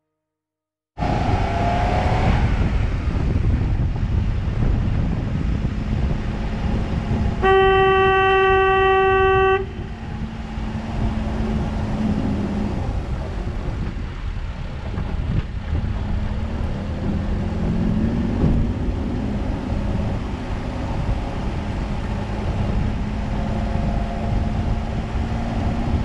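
Tyres roll steadily over a paved road.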